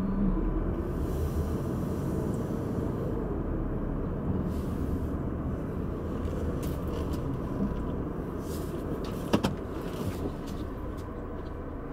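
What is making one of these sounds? Tyres roll slowly on pavement.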